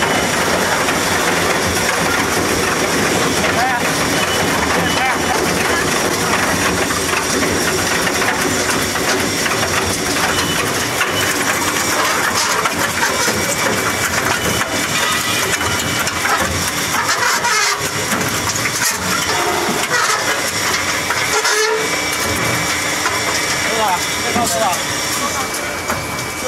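A machine roars steadily with a loud, noisy hum.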